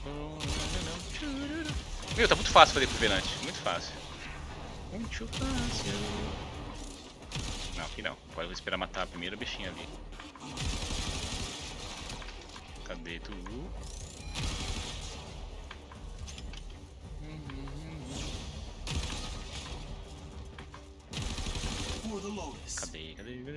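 Gunfire and blasts crackle in a video game.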